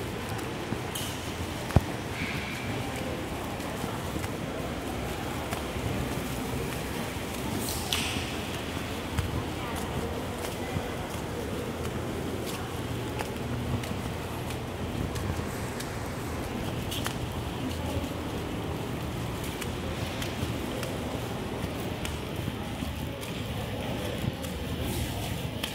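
Faint voices murmur and echo in a large hall.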